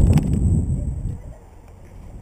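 Wind rushes past while a person swings on a rope.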